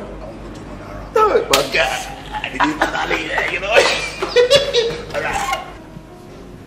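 Two men laugh loudly, close by.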